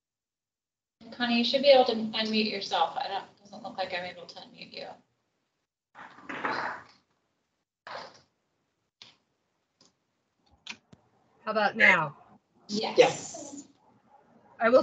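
A middle-aged woman speaks with animation over an online call.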